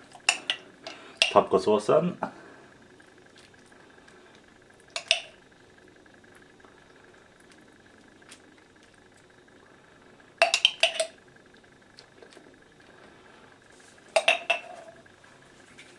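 A metal spoon clinks and scrapes against a glass jar.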